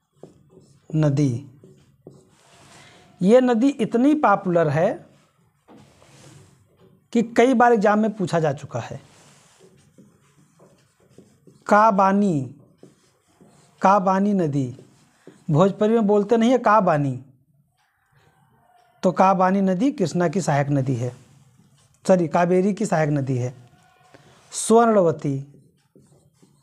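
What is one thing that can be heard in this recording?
A man speaks calmly and clearly in short phrases, close by.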